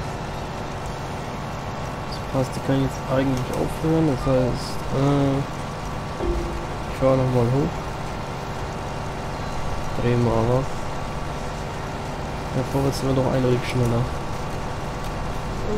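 A combine harvester engine drones steadily.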